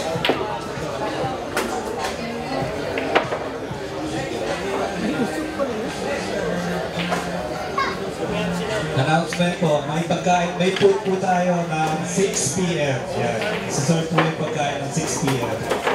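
A crowd of men chatter indoors in a busy hall.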